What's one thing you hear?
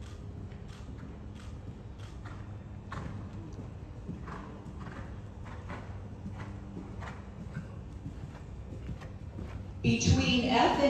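A horse's hooves thud rhythmically on soft sand.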